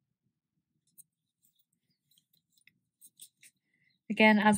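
Yarn rustles softly as a crochet hook works through it.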